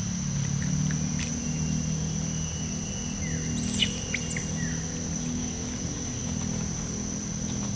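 A monkey chews on a piece of fruit nearby.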